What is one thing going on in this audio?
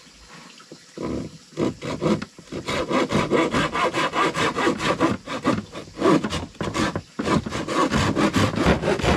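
A hand saw cuts through a wooden board with quick, rasping strokes.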